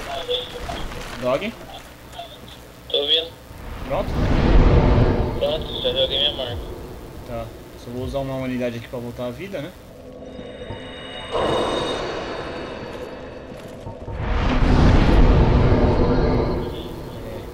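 A fire flares up with a loud whoosh.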